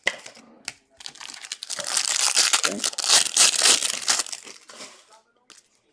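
A foil wrapper crinkles and tears open loudly.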